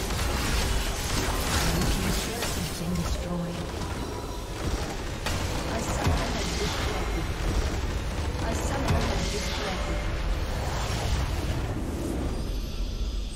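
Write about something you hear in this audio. Game spells crackle and blast in a loud battle.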